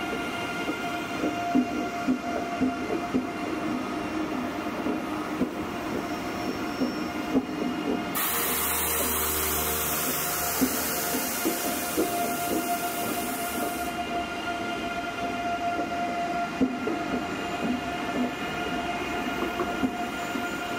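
A high-speed train glides past close by with a steady hum and rumble.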